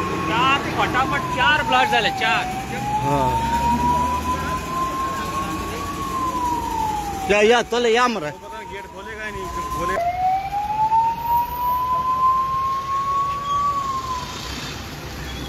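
A siren wails, rising and falling slowly.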